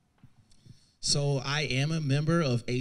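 A man speaks clearly through a microphone in a room with slight echo.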